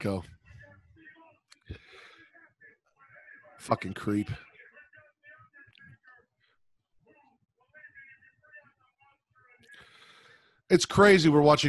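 Another man speaks and laughs over an online call.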